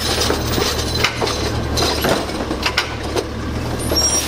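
A plastic bin clatters and thumps against metal.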